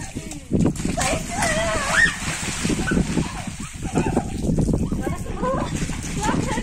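Young boys shout and laugh playfully.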